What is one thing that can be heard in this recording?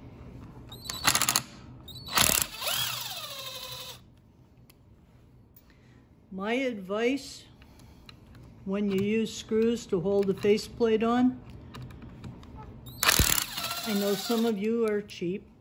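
A cordless drill whirs in short bursts and winds down.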